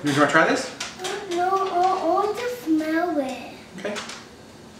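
A young girl speaks in a high voice.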